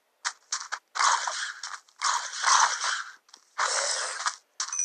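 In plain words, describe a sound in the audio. A fire crackles and hisses.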